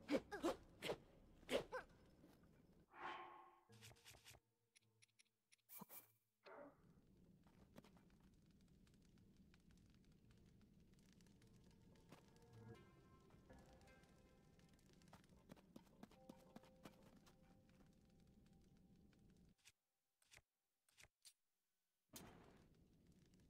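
Short game menu clicks and chimes sound in quick succession.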